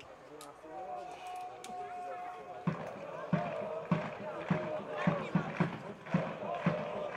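A crowd of fans chants and sings in the distance, outdoors.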